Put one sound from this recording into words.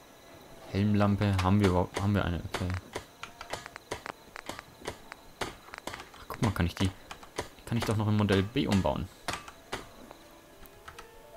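Short menu clicks tick as selections change.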